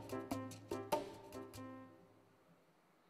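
A toy trumpet toots.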